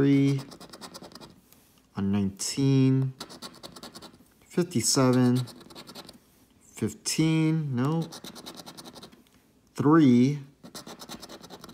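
A coin scrapes rapidly across a scratch card.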